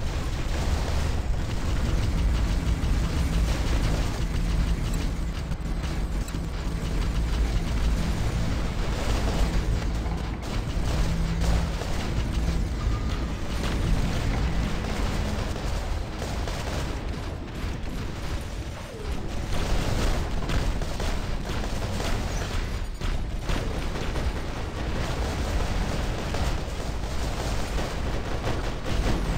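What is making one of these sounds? Big metal robot feet stomp heavily.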